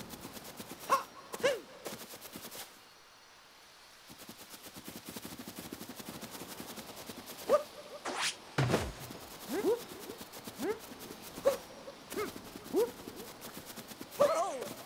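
Quick footsteps patter on soft ground.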